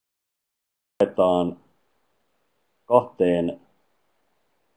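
A man speaks two short phrases over an online call.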